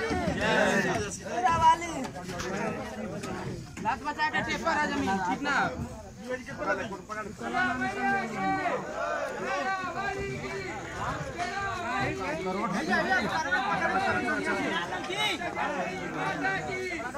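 A crowd of young men shout and chant loudly outdoors.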